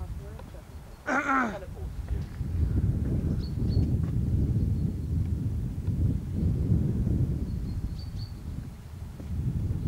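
Wind buffets the microphone outdoors with a low, gusty rumble.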